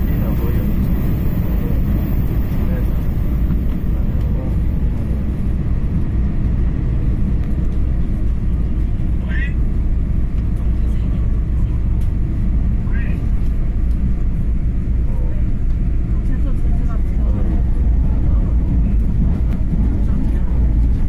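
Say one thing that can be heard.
A train rumbles steadily as it speeds along the track.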